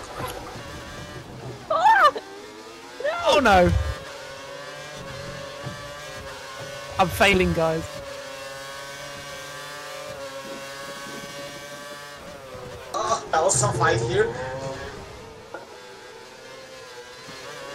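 A racing car engine whines at high speed, rising and falling with the gears.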